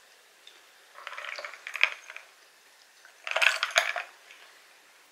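Ice rattles in a glass as a woman drinks.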